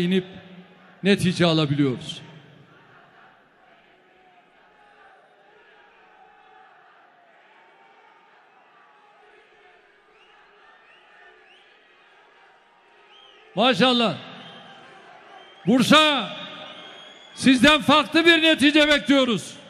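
A large crowd chants loudly in unison in an echoing hall.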